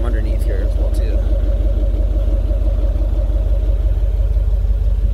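A vehicle engine idles close by with a deep, steady, throbbing exhaust rumble.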